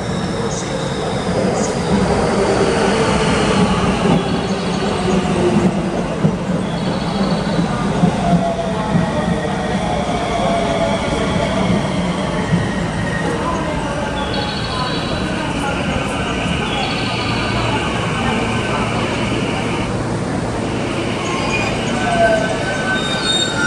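A train rumbles and rolls along the tracks close by.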